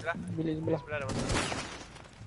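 Gunshots ring out in a short burst.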